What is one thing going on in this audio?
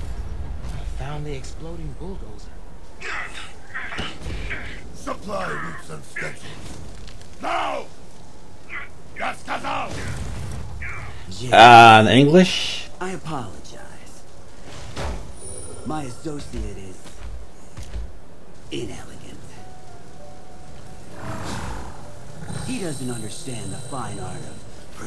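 A man speaks in a deep, menacing voice.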